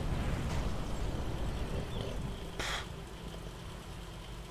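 A large explosion booms and rumbles, then fades.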